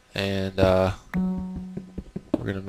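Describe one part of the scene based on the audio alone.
A note block plays a single plucked musical note.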